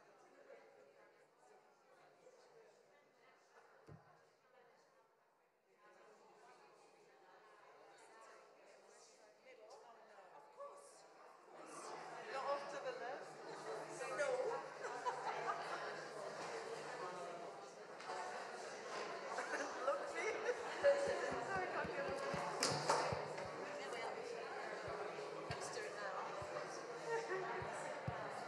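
Men and women chat in a murmur of voices in an echoing room, growing louder midway.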